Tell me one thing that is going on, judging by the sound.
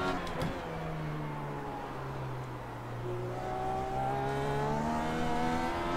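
A racing car engine whines steadily, dipping in pitch and then rising as it speeds up.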